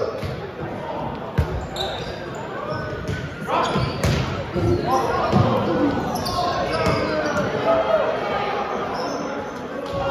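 A volleyball is hit with sharp slaps in a large echoing gym.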